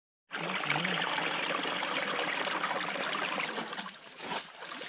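A stream trickles and splashes over rocks nearby.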